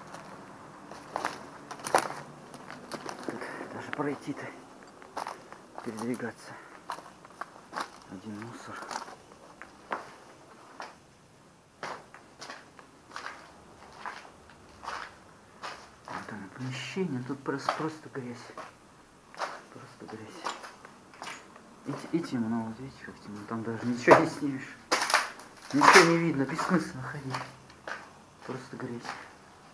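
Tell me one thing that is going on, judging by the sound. Footsteps crunch over debris and broken glass.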